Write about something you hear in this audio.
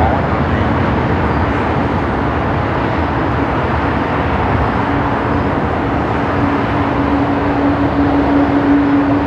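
A jet airliner roars loudly as it climbs away overhead.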